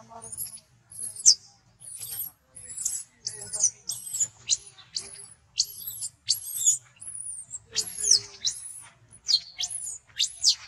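A baby monkey squeals and shrieks shrilly, over and over.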